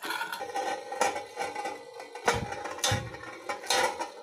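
Two spinning tops clash with sharp metallic clinks.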